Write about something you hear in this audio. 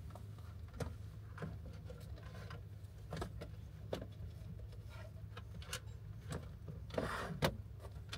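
A man handles small objects with light knocks and clicks.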